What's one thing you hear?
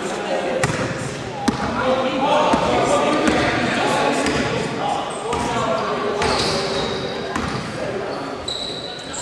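Young players shout and call out across an echoing hall.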